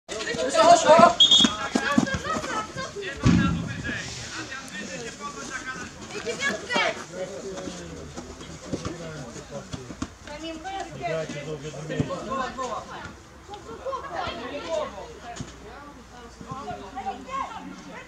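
Boys shout to each other outdoors across a playing field.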